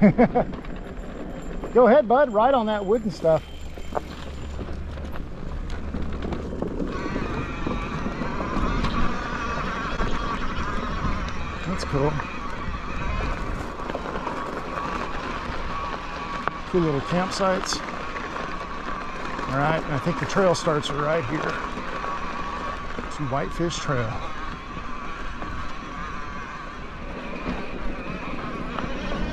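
Bicycle tyres roll and crunch over gravel and dirt.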